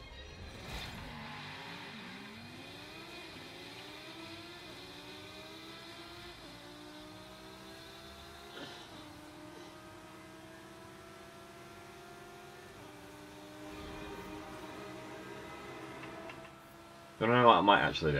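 A race car engine revs and roars, rising in pitch as it speeds up.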